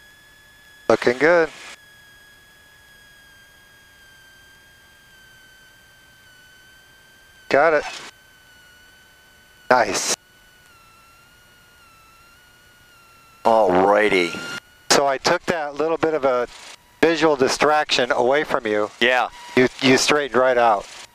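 An elderly man talks with animation through a headset intercom.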